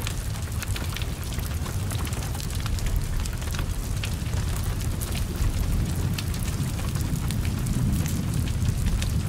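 Fire crackles and pops sharply.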